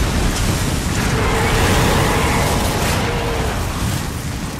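A huge creature crashes down with a loud rumbling impact.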